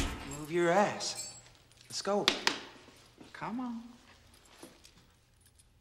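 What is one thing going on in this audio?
Metal chains clink.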